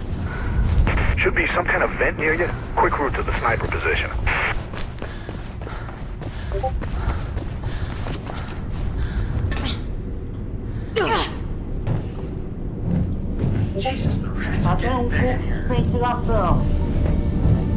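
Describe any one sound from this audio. A teenage boy talks calmly into a microphone.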